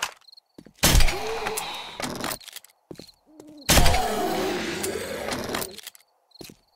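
A zombie snarls and groans.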